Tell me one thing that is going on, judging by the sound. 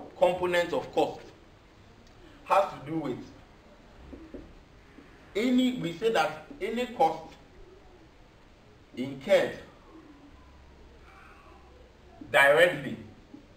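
A man speaks calmly and clearly, close by, in short phrases.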